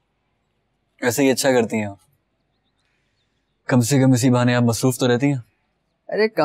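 A young man speaks warmly up close.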